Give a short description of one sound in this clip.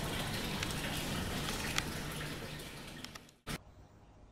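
Newspaper pages rustle and crackle.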